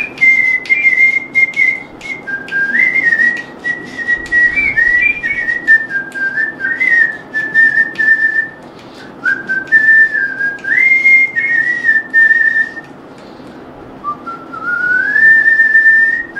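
A man whistles a slow melody close by.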